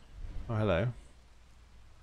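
A man exclaims briefly, close to a microphone.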